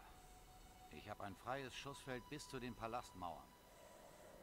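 A man with a rough voice speaks calmly.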